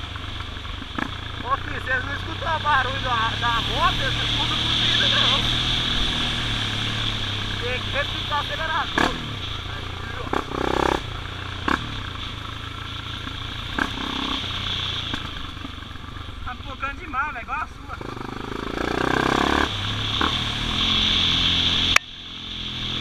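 A motorcycle knocks and rattles over bumps in the trail.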